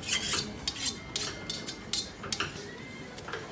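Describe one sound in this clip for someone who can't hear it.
A metal spatula scrapes and taps on a hot griddle.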